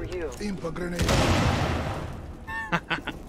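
A gun fires a loud shot that echoes and fades.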